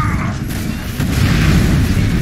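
A burst of energy blasts with a loud whoosh.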